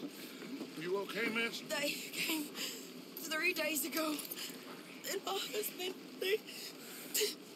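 A woman speaks shakily.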